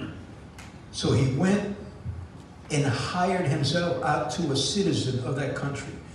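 A middle-aged man speaks through a microphone in a large room, preaching with animation.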